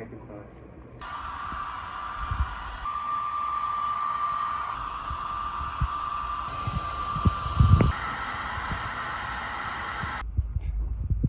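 A hair dryer blows with a steady whir.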